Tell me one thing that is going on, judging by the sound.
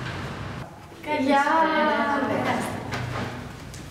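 A woman greets warmly nearby.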